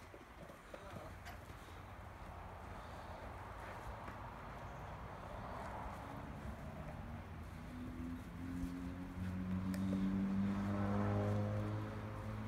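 A dog nudges a rubber ball through grass with soft bumps.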